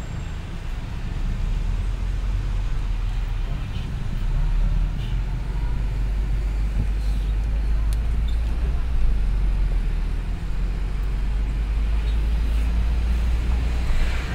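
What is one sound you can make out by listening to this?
Tyres roll over the road surface.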